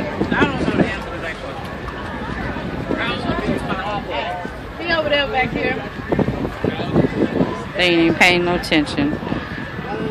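A crowd of adults talks together outdoors.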